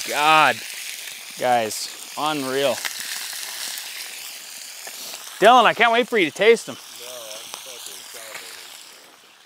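A man talks outdoors at a short distance.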